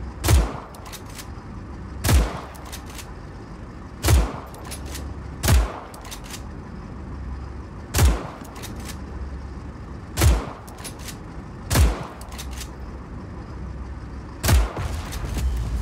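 Spent shell casings clink after the gunshots.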